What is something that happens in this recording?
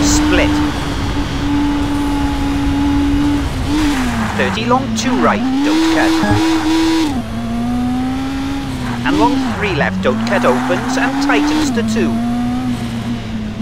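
A car engine drones steadily and rises and falls in pitch as gears shift.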